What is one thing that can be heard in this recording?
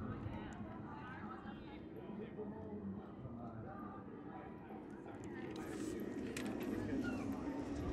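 Young women chat nearby outdoors.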